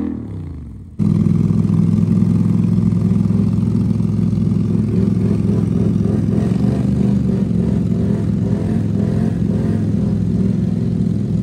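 An all-terrain vehicle engine idles loudly close by with a deep rumble.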